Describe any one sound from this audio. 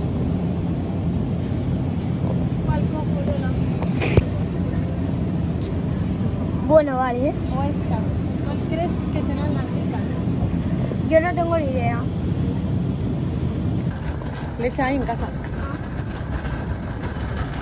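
A shopping cart rolls and rattles.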